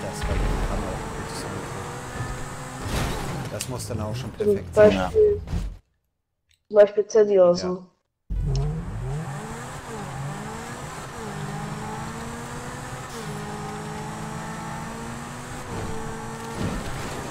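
A sports car engine roars and revs at high speed.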